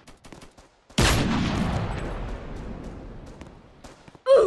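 A rifle shot booms and rings out.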